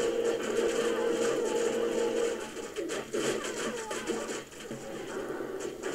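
Fire roars steadily.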